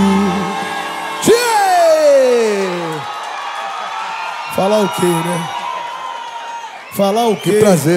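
A band plays music on stage.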